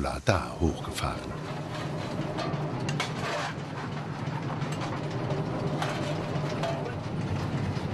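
A fire roars in a locomotive firebox.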